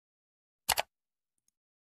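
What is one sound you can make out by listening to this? A button clicks once.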